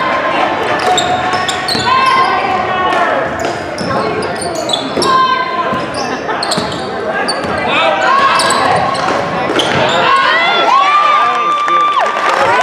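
Spectators murmur and cheer in the stands.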